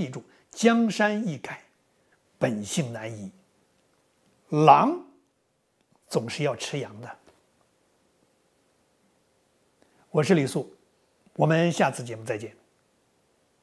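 A middle-aged man speaks with animation into a close microphone, in short bursts with pauses.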